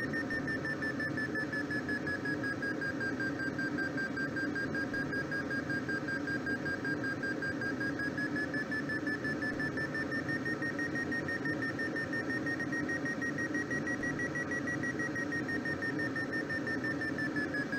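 Wind rushes steadily past a glider's cockpit.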